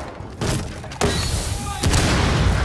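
Wooden boards splinter and crack apart.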